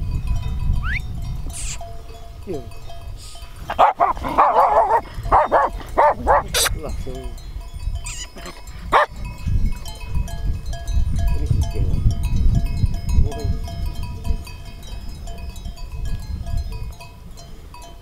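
Wind blusters across an open hillside.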